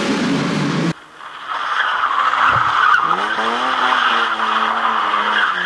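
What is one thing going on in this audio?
Tyres skid and spray loose gravel.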